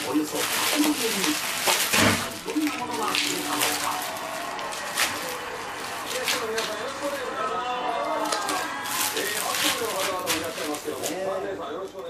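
Foil pouches crackle as hands shuffle them.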